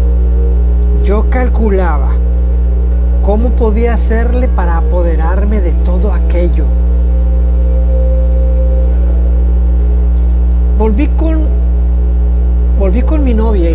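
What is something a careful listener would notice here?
A man sings close into a microphone.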